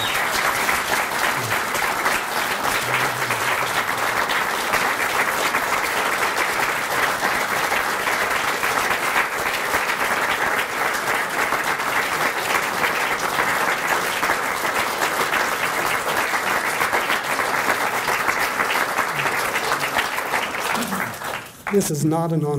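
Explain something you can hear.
A crowd applauds loudly in a room.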